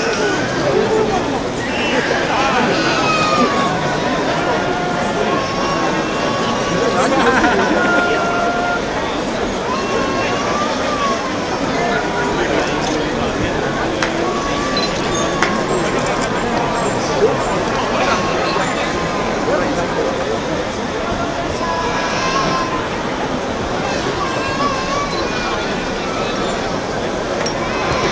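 A large outdoor crowd murmurs and chatters steadily.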